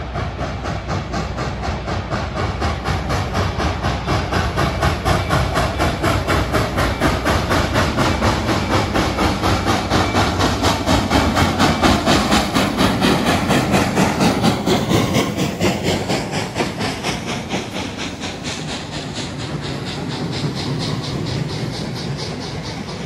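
A steam locomotive chuffs loudly in quick, rhythmic puffs as it approaches and passes close by.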